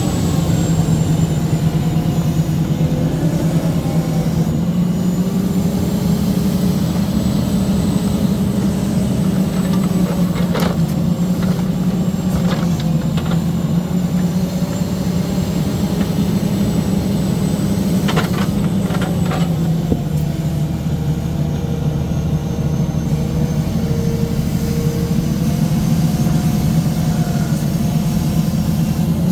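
A hydraulic arm whines as it moves.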